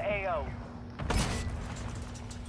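A heavy metal shield thuds down onto the floor.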